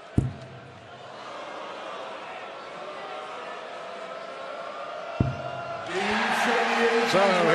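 A large crowd murmurs and cheers in a big echoing hall.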